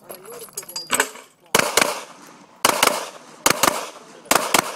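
A pistol fires a rapid series of loud shots outdoors.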